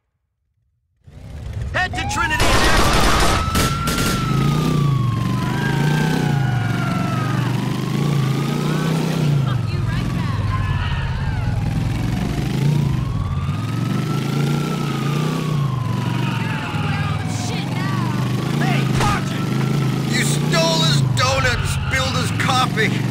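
A motorcycle engine roars and revs steadily.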